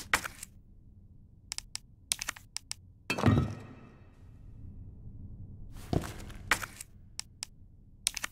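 Short menu clicks and beeps sound in quick bursts.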